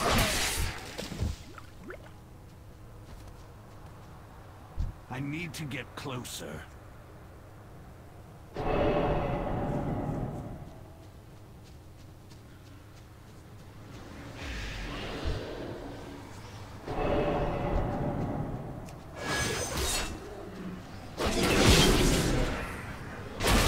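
Spells and weapon blows crackle and clash in a fantasy battle.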